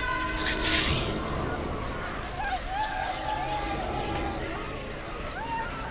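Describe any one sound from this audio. Fire roars in a blast.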